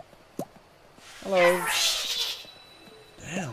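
A small cartoon creature squeals loudly and excitedly up close.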